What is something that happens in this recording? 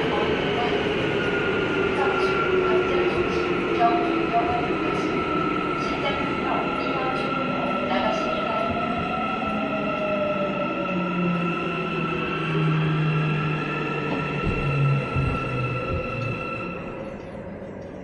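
An electric subway train's motors whine, falling in pitch as the train slows.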